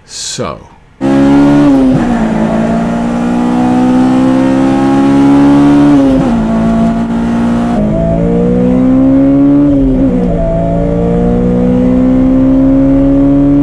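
A car engine revs up steadily from inside the cabin, dropping in pitch at each gear change.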